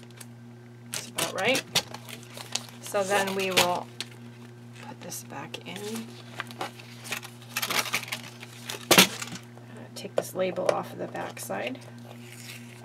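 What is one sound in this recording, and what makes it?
Cardboard rustles and taps against a table.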